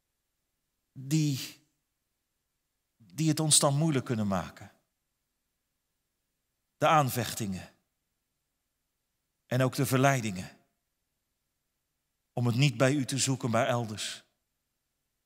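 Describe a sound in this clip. A man prays calmly into a microphone, in short phrases with pauses.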